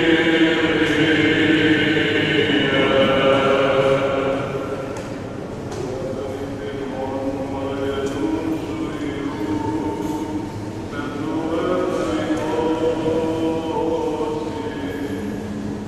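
A choir of men chants together in a large echoing hall.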